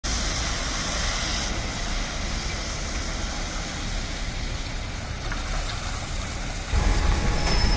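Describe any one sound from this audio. Buses approach with engines rumbling.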